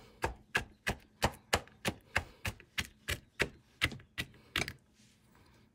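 A knife chops rapidly on a cutting board.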